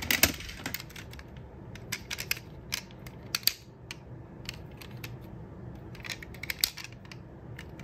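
A small plastic toy car clicks and rattles as it is handled up close.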